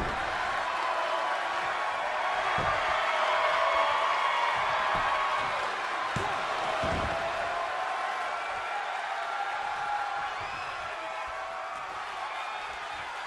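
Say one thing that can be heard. A large crowd cheers and chants loudly throughout.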